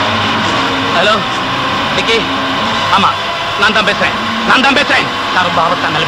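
A man talks loudly into a handheld radio.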